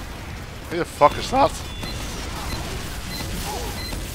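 Gunshots and an explosion boom in a video game.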